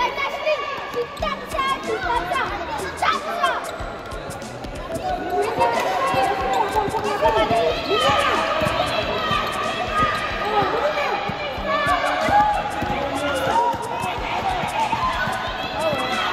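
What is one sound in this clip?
Young girls shout and cheer loudly, echoing around the hall.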